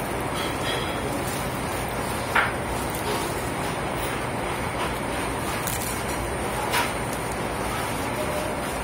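A man bites into a crusty sandwich and chews.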